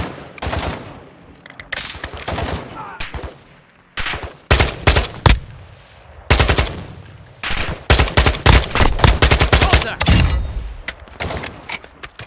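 Rifle gunfire cracks in loud bursts.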